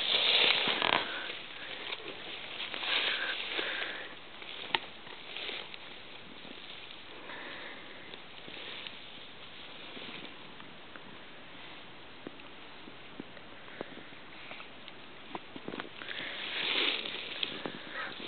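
A horse snorts and breathes heavily close by.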